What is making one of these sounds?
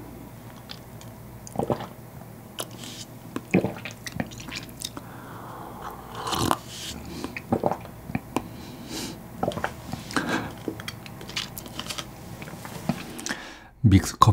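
A man slurps a hot drink close to a microphone.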